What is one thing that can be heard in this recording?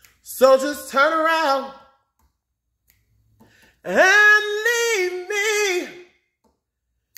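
A man sings loudly close to a phone microphone, in long held notes.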